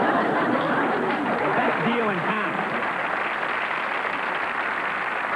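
A large audience applauds and cheers throughout.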